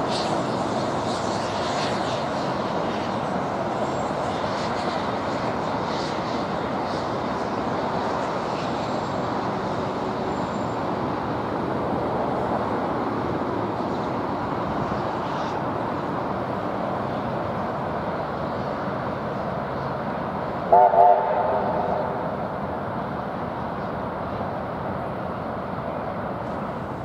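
A steam locomotive chuffs steadily in the distance.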